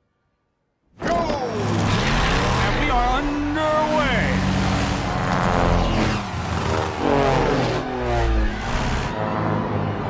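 Propeller plane engines roar loudly as planes race past one after another.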